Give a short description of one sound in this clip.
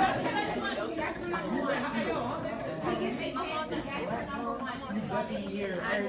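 A crowd of young men and women chatter and talk over one another in a room.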